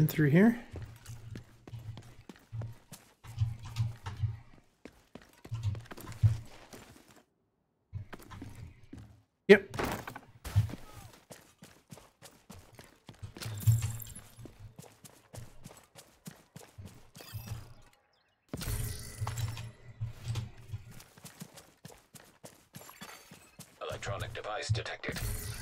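Footsteps thud quickly over ground and grass.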